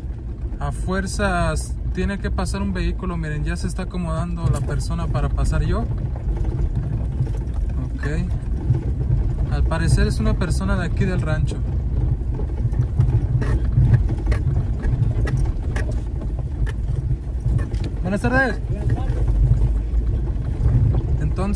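A car engine rumbles steadily on a bumpy dirt track.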